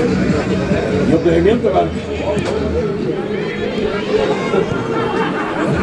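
Spectators chatter and call out around an outdoor football pitch.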